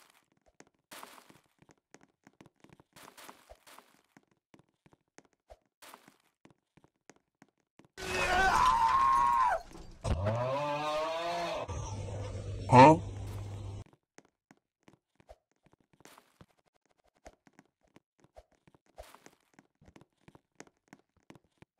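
Light footsteps patter quickly on hard ground.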